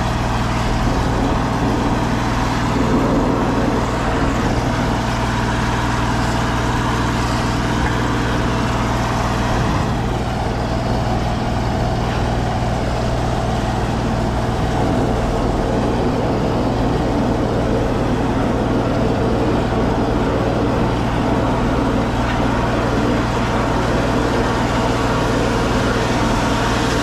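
A drain cleaning cable whirs and rattles steadily as it spins in a pipe.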